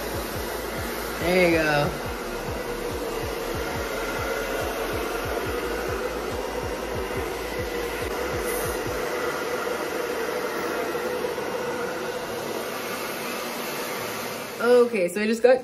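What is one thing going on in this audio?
A hair dryer blows with a steady whir.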